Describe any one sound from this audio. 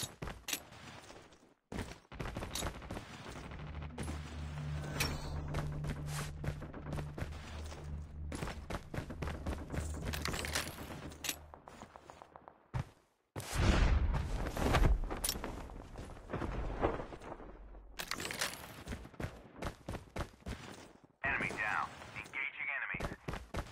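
Quick footsteps run across hard ground.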